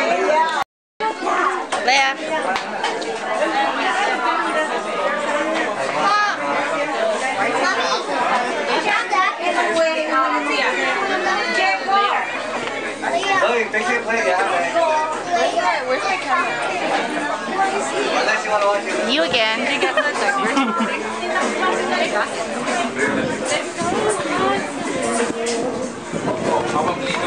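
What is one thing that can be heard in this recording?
A crowd of adults and children chatter nearby.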